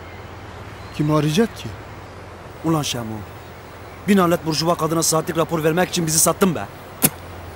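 A man answers calmly close by.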